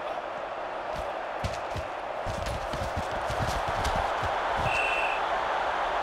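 Football players collide with dull thuds.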